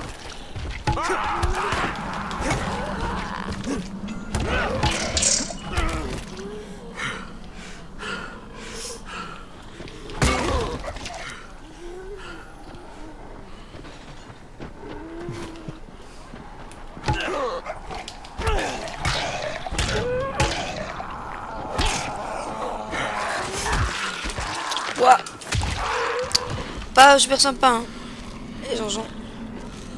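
Heavy blows of a bat thud against zombies again and again.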